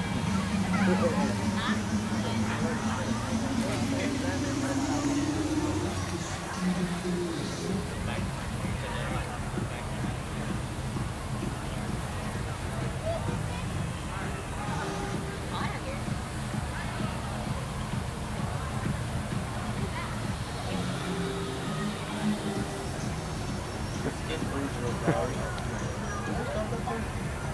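Young men and women talk casually nearby, outdoors.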